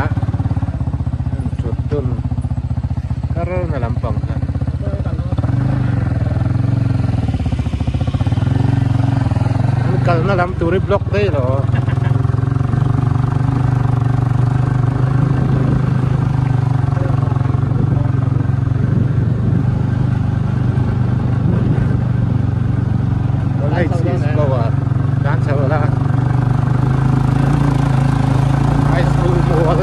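Tyres crunch on a rough dirt road.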